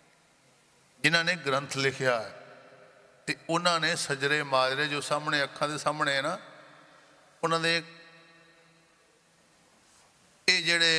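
An elderly man chants loudly into a microphone in short phrases.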